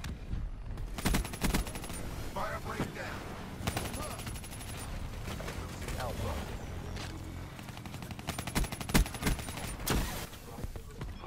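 Gunfire from an automatic rifle cracks in a video game.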